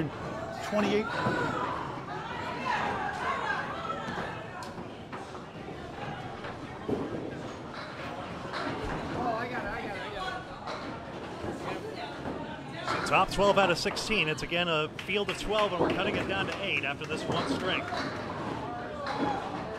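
Women nearby talk and cheer with excitement in an echoing hall.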